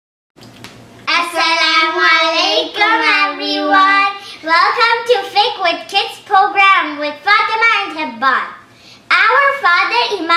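A young boy speaks close to a microphone.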